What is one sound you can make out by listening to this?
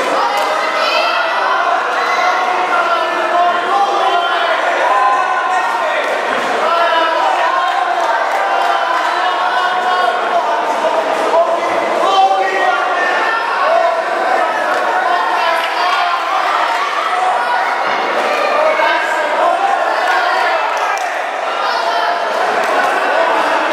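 A crowd of people talk and shout in a large echoing hall.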